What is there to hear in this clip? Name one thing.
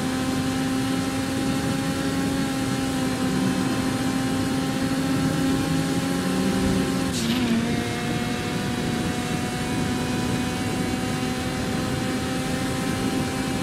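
A car engine hums steadily at speed, dipping briefly as the gear shifts.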